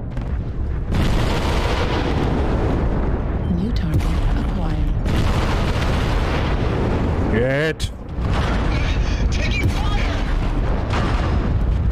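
Weapons fire and explosions roar heavily.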